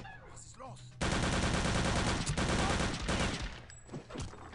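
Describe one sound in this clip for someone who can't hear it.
A submachine gun fires a rapid, loud burst.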